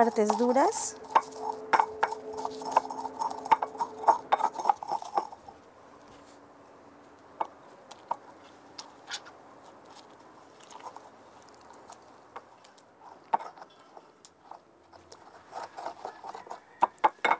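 A stone pestle grinds and taps in a stone bowl.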